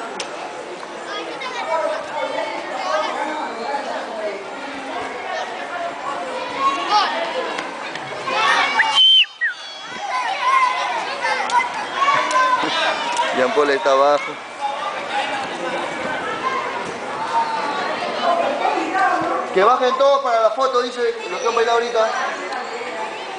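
A crowd of children and adults chatter and shout nearby, outdoors.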